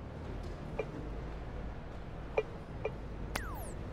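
Soft interface clicks sound a few times.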